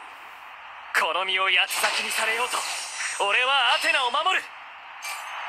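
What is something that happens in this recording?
A victory fanfare plays.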